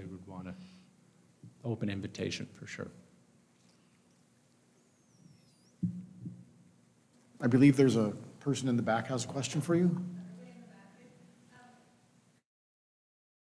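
A man speaks into a microphone through loudspeakers in a large echoing room.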